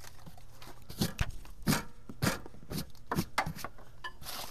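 Boots knock and clunk against a tractor's metal frame.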